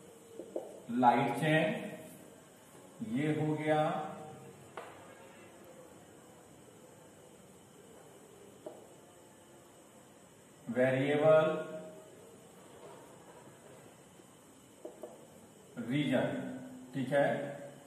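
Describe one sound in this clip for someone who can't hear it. A man speaks in short bursts, explaining calmly.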